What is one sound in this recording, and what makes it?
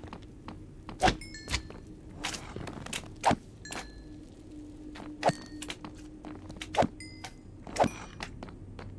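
A sword strikes with sharp, repeated hits.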